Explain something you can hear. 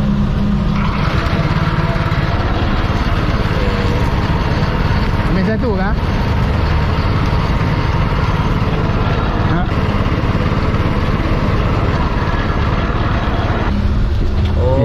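A small motor engine runs with a steady loud drone.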